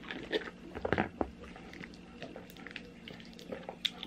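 A young man gulps a fizzy drink from a bottle.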